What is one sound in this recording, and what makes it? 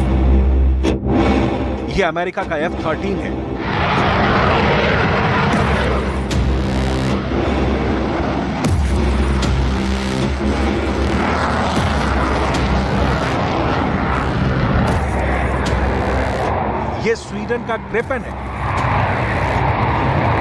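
A jet engine roars loudly.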